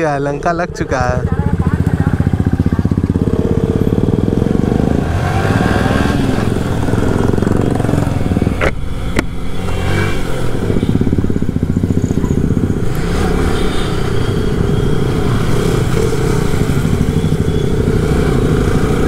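A motorcycle engine roars steadily while riding along.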